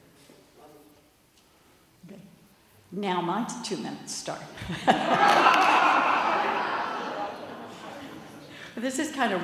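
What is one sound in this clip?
An older woman speaks with animation through a microphone in an echoing hall.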